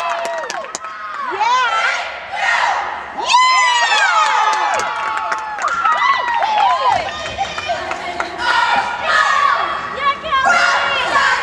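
Young women shout and cheer with excitement in a large echoing gym.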